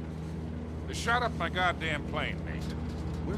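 An older man shouts angrily over the engine noise.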